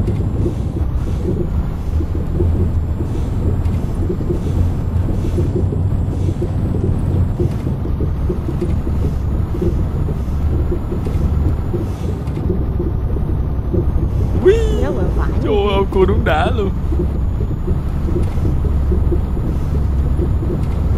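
A truck engine rumbles steadily at low revs.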